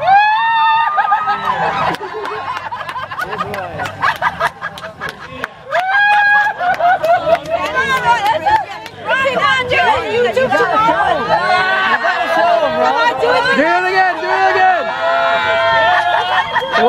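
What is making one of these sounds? Several women talk and laugh excitedly close by, outdoors.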